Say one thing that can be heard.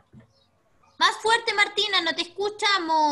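A child speaks loudly and with animation over an online call.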